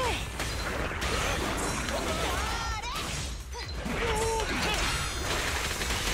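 Explosions burst with loud booms.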